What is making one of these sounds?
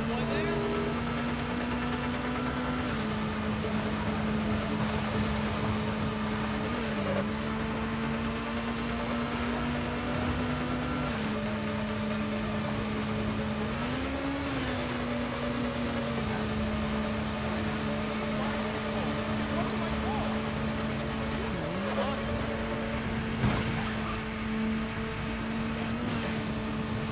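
A motorcycle engine hums steadily, its pitch dipping and rising now and then.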